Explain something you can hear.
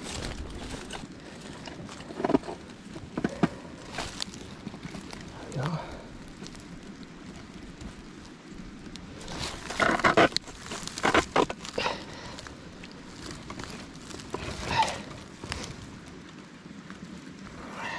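Metal clinks and rattles as gloved hands work a small trap.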